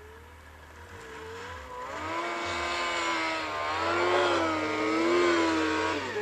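A snowmobile engine drones in the distance and grows louder as it approaches.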